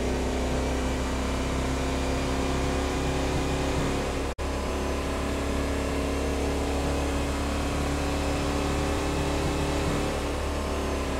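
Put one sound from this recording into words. A car engine hums steadily at high speed.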